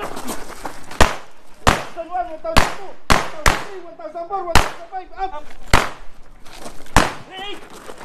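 Pistol shots crack loudly outdoors, one after another.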